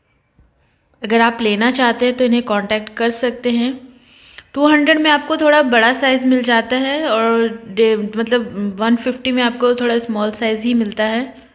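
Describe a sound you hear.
A young woman speaks close to a microphone, calmly and with animation.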